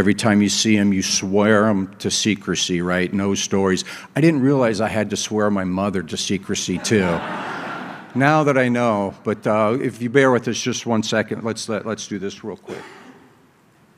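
An elderly man speaks steadily into a microphone in a large echoing hall.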